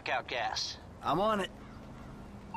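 A man speaks briefly on a phone.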